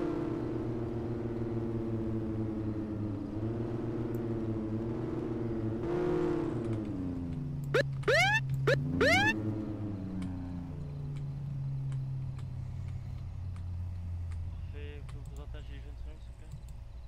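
A car engine hums steadily, rising and falling in pitch.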